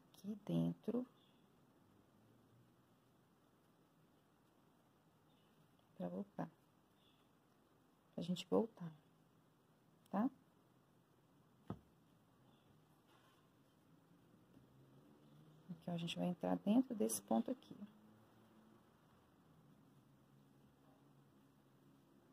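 A crochet hook softly pulls thick yarn through loops.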